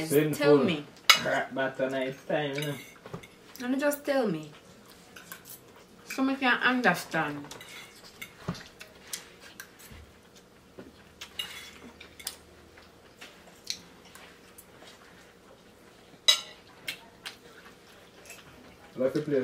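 A fork clicks and scrapes on a plate.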